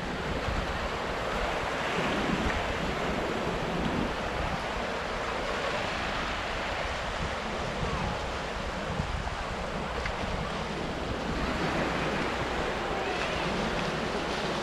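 A man talks up close.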